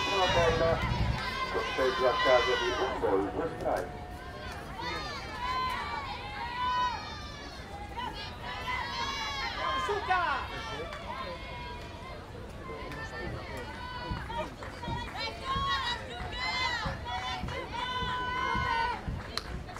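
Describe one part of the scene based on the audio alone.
A crowd cheers and chants loudly.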